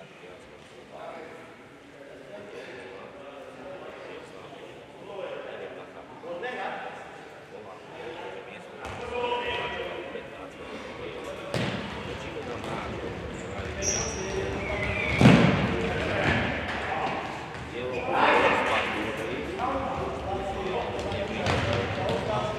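A ball is kicked with dull thuds.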